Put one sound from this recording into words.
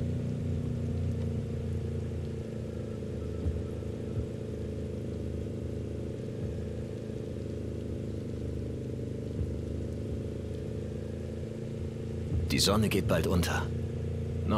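A car engine hums steadily while driving along a road.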